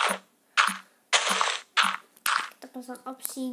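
Dirt crunches repeatedly as blocks are dug out.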